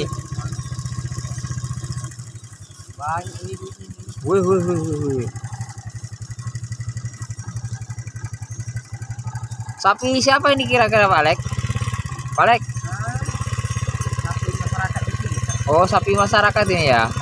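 A motorbike engine idles with a steady low putter.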